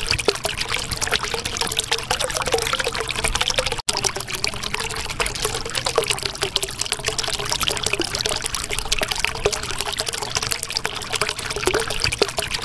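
Water bubbles and gurgles steadily.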